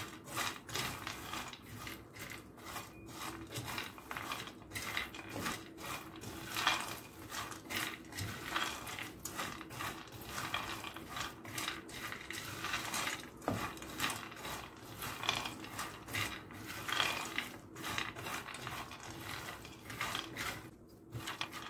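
Nuts rattle and scrape as a spatula stirs them in a pan.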